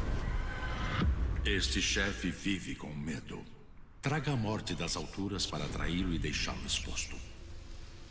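A gruff male creature voice growls and speaks menacingly.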